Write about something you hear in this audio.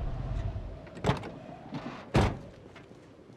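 A car door slams shut twice.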